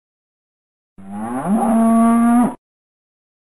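A cow moos loudly.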